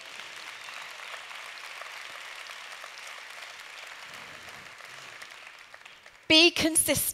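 A large audience applauds in a big hall, then the clapping fades.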